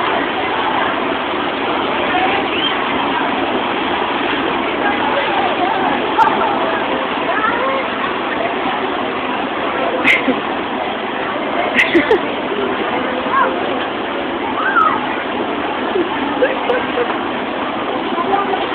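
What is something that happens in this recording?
Young children chatter and shout excitedly nearby.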